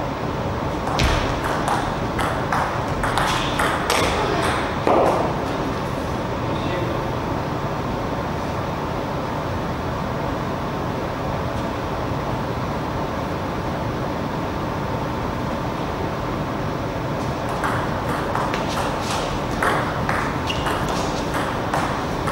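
A ping-pong ball clicks back and forth off paddles and a table in a quick rally.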